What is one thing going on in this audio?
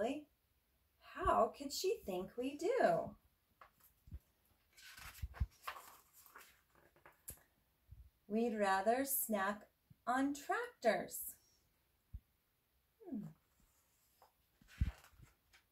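A woman reads aloud expressively close by.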